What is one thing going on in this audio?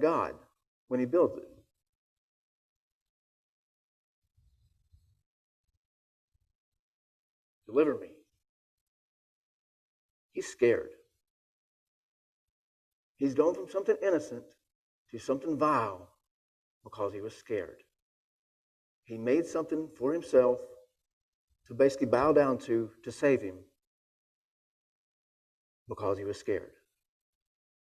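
A man reads aloud in a calm voice, close to a microphone, with long pauses.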